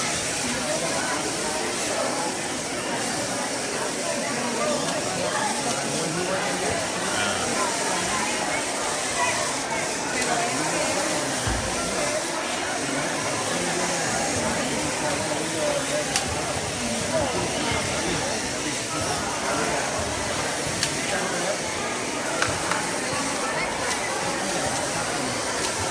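A crowd of children and adults chatters in a large echoing hall.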